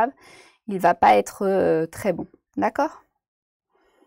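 A young woman speaks calmly and close to a microphone.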